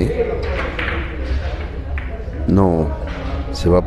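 Billiard balls roll and knock against each other and the cushions.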